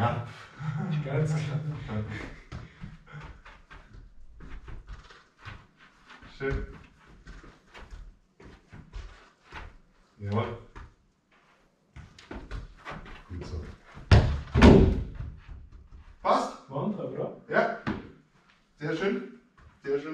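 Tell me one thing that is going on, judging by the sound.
A man speaks calmly and explains in a small echoing room.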